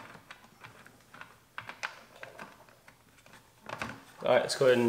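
A man handles plastic parts that click and rattle softly.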